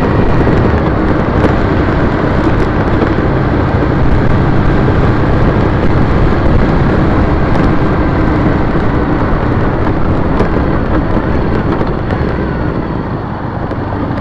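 Tyres roll over a rough road surface with rattling bumps.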